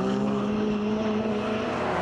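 Tyres spray gravel as a car slides through a bend.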